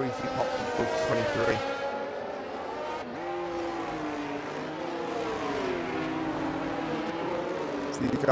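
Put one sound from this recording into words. A racing car engine whines loudly, its pitch rising and falling as it shifts gears.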